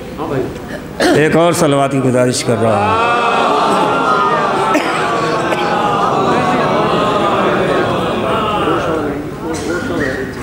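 A man chants loudly in a drawn-out, singing voice through a microphone.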